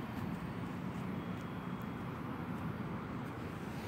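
Dry grass rustles faintly under a cat's paw.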